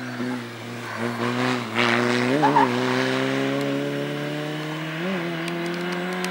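A race car engine blips and revs sharply several times through the bends.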